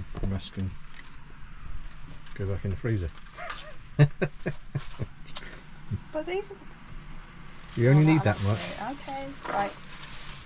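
Lettuce leaves crinkle and tear in a woman's hands.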